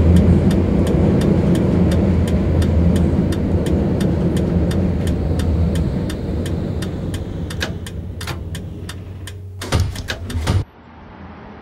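Tram wheels click over rail joints.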